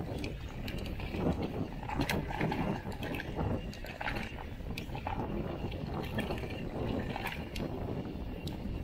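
A bicycle frame clatters and clicks over bumps.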